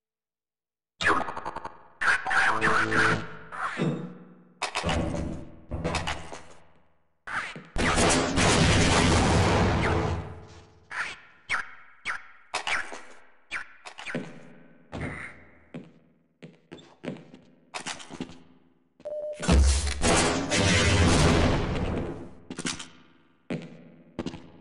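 Loud weapon shots and explosions crack and echo, one after another.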